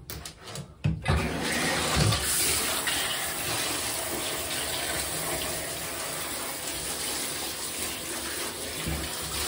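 A shower head sprays water with a steady hiss.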